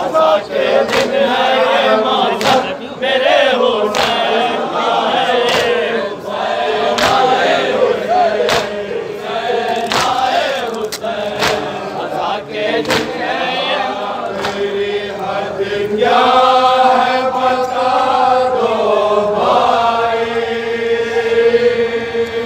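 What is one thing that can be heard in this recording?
An elderly man chants and recites with emotion through a loudspeaker microphone, in an echoing hall.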